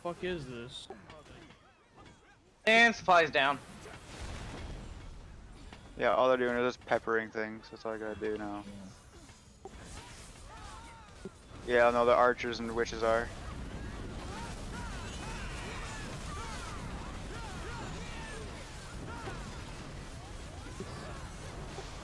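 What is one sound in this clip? Swords clash and spells burst in a noisy battle.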